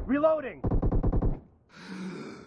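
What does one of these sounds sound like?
Rifle fire rattles in a rapid burst.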